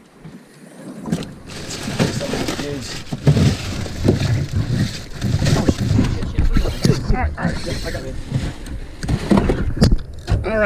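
Outboard motors rumble as the boat runs.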